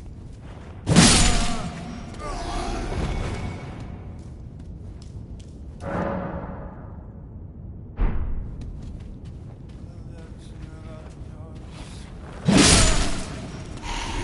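A heavy blade strikes a body with loud, sudden thuds.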